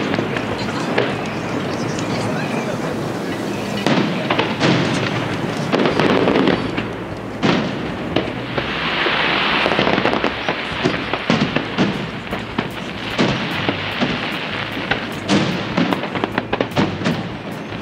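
Fireworks boom and bang repeatedly in the open air.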